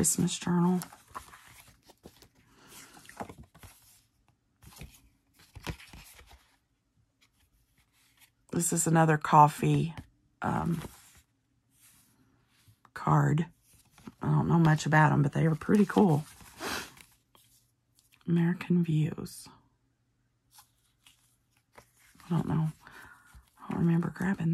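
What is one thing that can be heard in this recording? Stiff paper rustles and crinkles between the hands.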